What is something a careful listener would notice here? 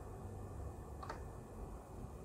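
A button on an electronic instrument clicks once.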